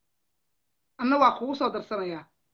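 A woman speaks with animation, close to the microphone.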